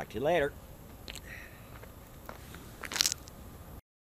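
Shoes scuff on gravel as a person walks away.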